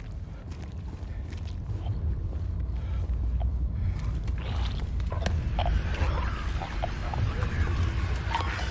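Footsteps scuff slowly on a hard floor.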